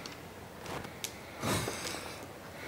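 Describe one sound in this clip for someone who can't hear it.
A mahjong tile clicks against other tiles on a table.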